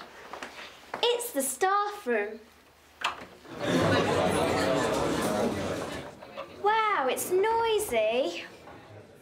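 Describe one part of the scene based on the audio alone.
A young girl speaks calmly nearby.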